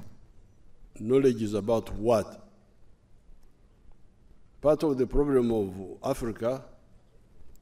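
An elderly man speaks slowly and calmly through a microphone, with pauses.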